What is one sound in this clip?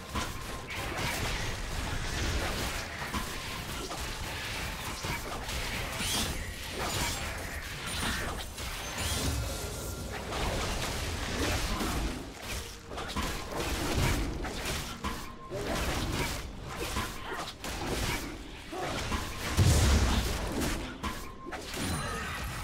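Hits land with sharp thuds during combat.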